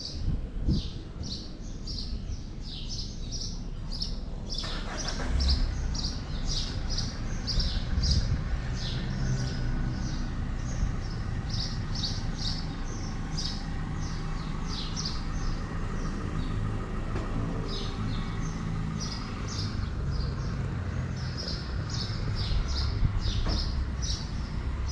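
A cat purrs softly and steadily up close.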